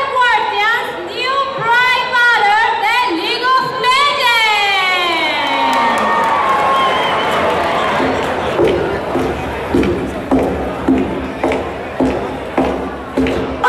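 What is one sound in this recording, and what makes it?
Loud electronic music with a sliding synth melody plays over loudspeakers in a large echoing hall.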